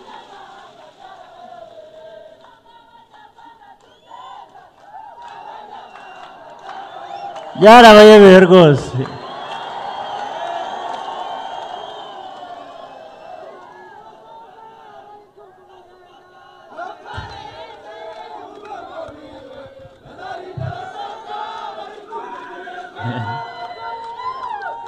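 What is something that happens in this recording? A man speaks through a microphone over loudspeakers, with animation.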